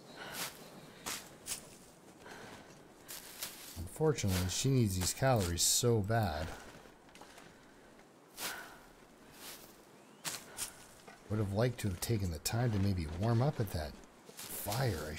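Dry plant stalks snap as they are pulled from the snow.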